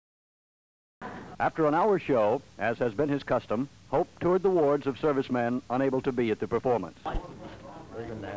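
A man speaks into a microphone on stage.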